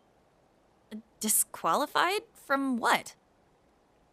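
A young woman asks a puzzled question.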